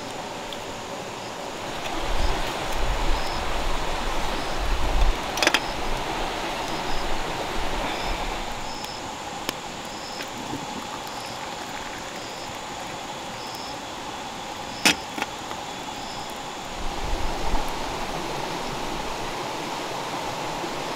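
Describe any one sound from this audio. A stream flows steadily nearby.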